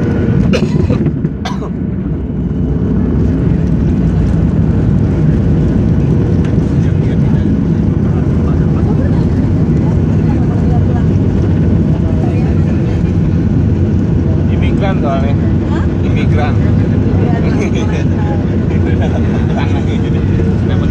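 An airplane rumbles as it rolls along a runway.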